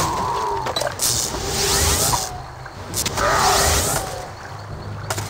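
Weapons strike in a brief fight.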